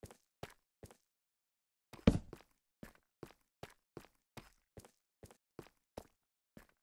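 Footsteps crunch on stone in a video game.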